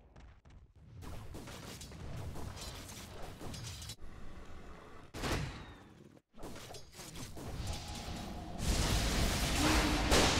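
Magic blasts and weapon strikes clash in a fast game fight.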